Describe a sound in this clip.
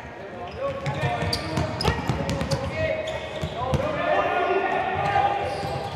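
Sneakers squeak on a hard floor as players run.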